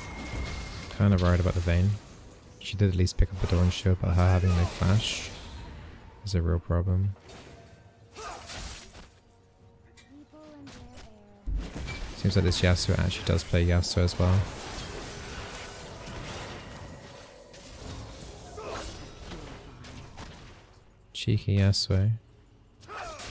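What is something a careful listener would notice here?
A young man talks with animation close to a microphone, in bursts.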